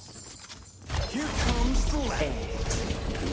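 A loud blast of magic crackles and booms.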